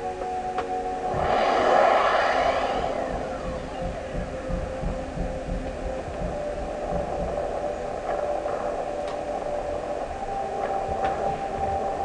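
Soft electronic game music plays steadily.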